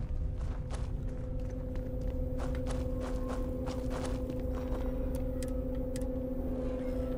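Boots crunch on rocky ground with slow footsteps.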